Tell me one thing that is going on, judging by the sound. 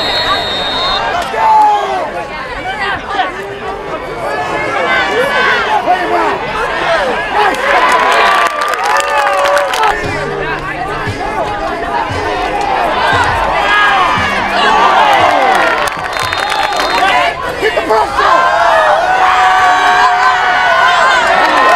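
A crowd cheers loudly in an open-air stadium.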